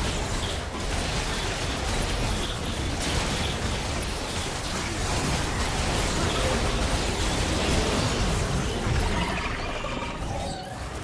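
Spell blasts and weapon clashes crackle and boom in a busy video game battle.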